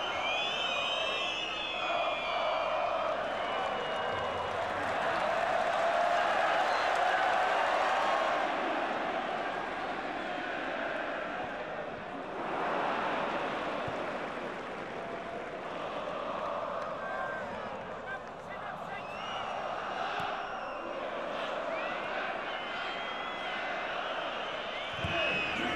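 Shrill whistles sound from a stadium crowd.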